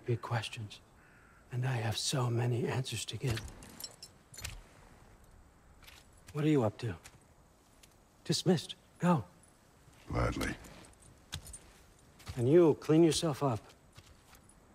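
An elderly man speaks calmly and firmly.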